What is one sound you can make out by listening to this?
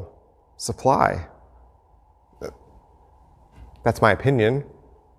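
A middle-aged man speaks with animation into a clip-on microphone, close by.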